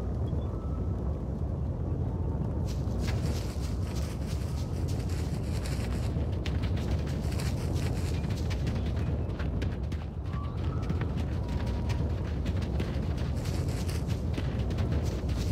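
Footsteps patter quickly on the ground.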